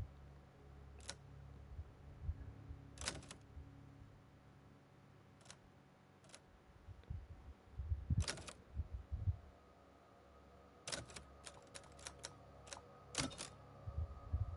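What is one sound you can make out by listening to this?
Short electronic menu clicks sound again and again.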